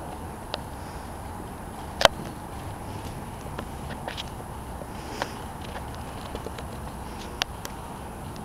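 A horse's hooves thud softly on sand as it walks.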